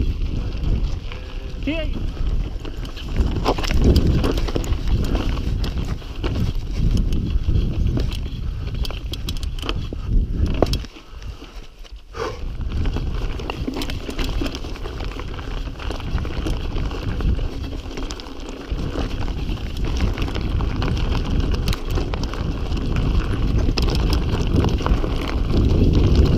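Bicycle tyres crunch and rattle over loose rocks.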